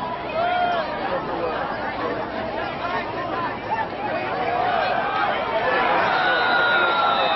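A large crowd of spectators cheers and shouts outdoors.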